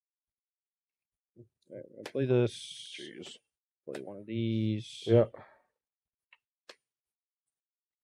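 Playing cards are laid down on a table with soft taps.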